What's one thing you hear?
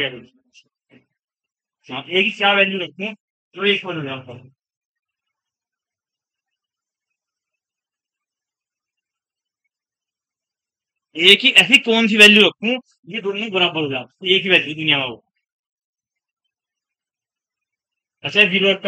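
A man speaks calmly and clearly nearby, in short bursts with pauses.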